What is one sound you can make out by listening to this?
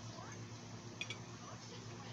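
A fork clicks against a plate.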